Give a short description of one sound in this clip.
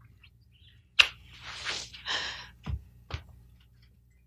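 A woman speaks with animation.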